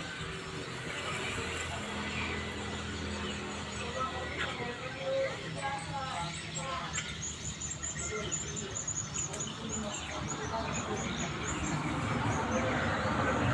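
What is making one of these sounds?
A trowel scrapes and smooths wet plaster on a wall.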